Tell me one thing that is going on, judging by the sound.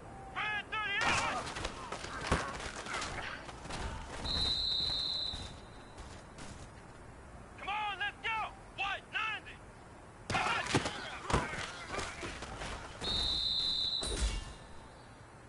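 Football players crash together in tackles with dull thuds.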